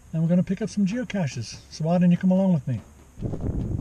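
An older man talks animatedly close to a microphone.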